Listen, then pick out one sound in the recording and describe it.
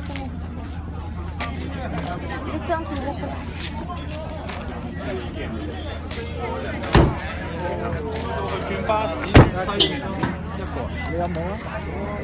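A crowd of men and women chatter outdoors nearby.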